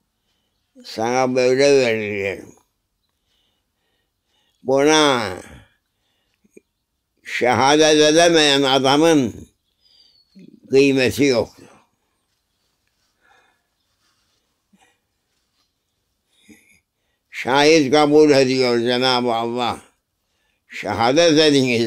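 An elderly man speaks slowly and calmly close by, with long pauses.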